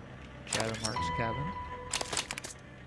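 A short electronic chime sounds as an item is picked up.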